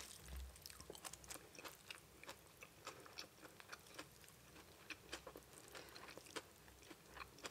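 Noodles squelch and rustle as fingers handle them.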